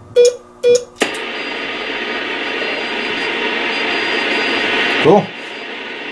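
A radio receiver hisses loudly with static.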